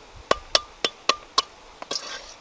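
A cleaver chops sharply on a wooden board.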